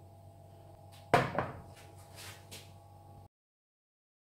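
A pan of curry simmers and bubbles softly.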